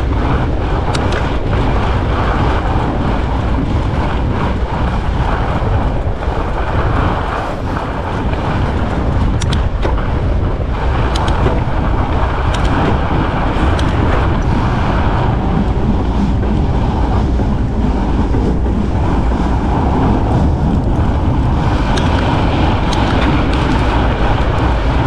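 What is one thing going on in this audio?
Wind rushes steadily across the microphone outdoors.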